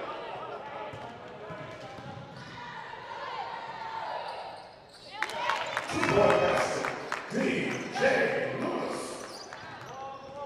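Spectators murmur and call out in a large echoing gym.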